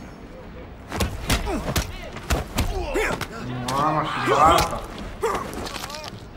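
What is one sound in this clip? Punches and blows land with heavy thuds.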